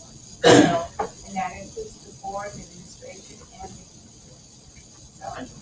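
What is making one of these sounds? A woman speaks in short bursts close by, in a quiet room.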